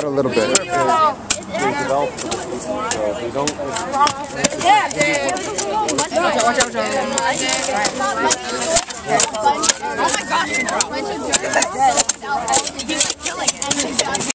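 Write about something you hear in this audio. Children and teenagers chatter and talk over one another close by, outdoors.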